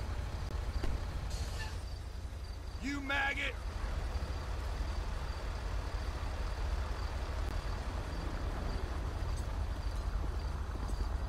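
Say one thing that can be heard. Vehicle engines idle with a low, steady rumble.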